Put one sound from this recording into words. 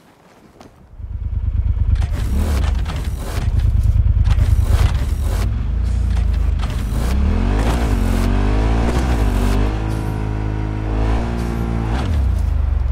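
A motorbike engine roars steadily as the bike rides along.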